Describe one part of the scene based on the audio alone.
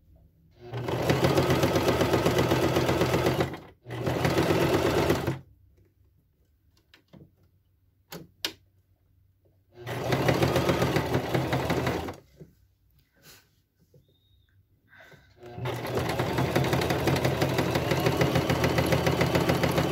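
A sewing machine whirs in fast bursts, stopping and starting.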